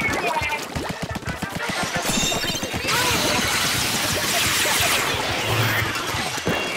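Wet ink splatters and splashes in rapid bursts.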